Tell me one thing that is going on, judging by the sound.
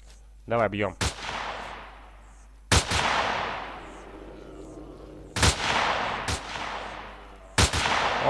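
A rifle fires several times, each shot rolling away in a long echo.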